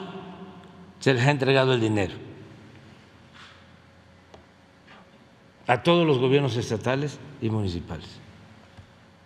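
An elderly man speaks with animation into a microphone.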